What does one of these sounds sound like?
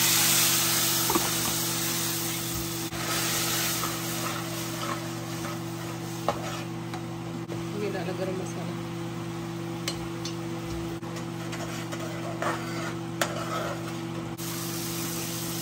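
Sauce sizzles in a hot pan.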